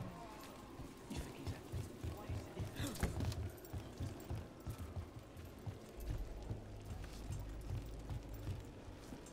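Heavy footsteps thud on wooden boards.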